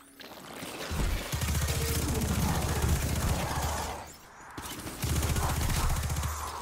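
Rapid gunfire blasts loudly in bursts.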